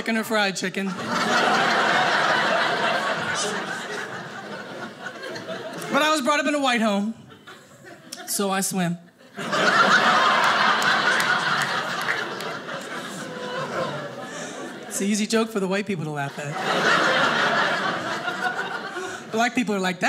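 An audience laughs loudly and applauds.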